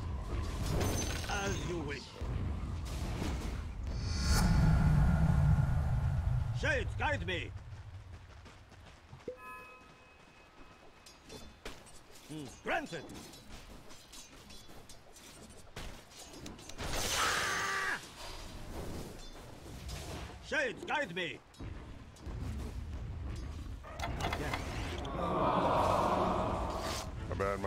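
Video game spell and combat sound effects burst and clash.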